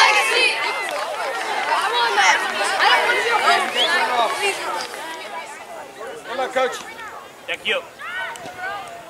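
Young boys shout and call to each other.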